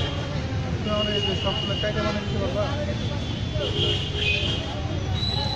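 A busy street murmurs outdoors with traffic and voices.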